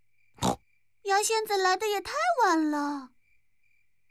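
A young cartoon girl speaks with animation in a high voice.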